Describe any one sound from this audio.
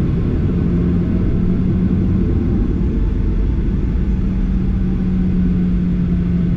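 A jet engine roars steadily close by, heard from inside an aircraft cabin.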